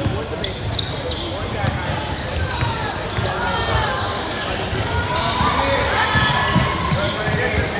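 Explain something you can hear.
Young people shout and call out in a large echoing gym.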